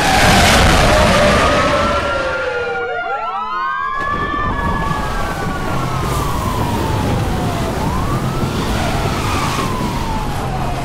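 A police siren wails and rises and falls in pitch.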